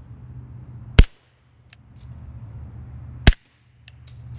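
A suppressed pistol fires with a sharp crack outdoors.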